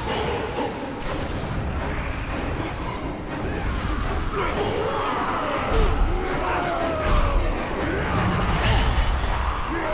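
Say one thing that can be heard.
Creatures growl and roar in a fierce battle.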